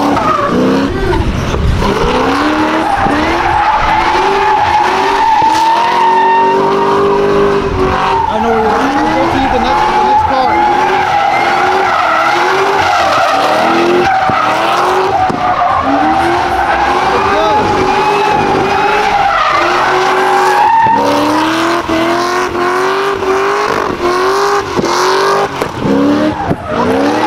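A car engine revs hard and repeatedly, rising and falling in pitch.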